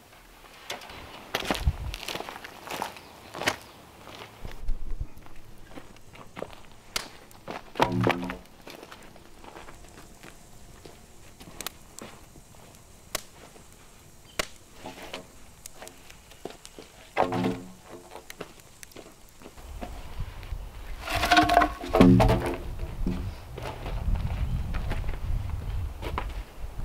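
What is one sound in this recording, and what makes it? Footsteps crunch on dry dirt and twigs.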